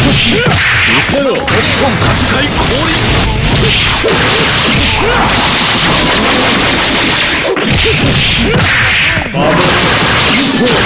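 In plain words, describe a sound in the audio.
Blows and explosions from a fighting game hit one after another in quick succession.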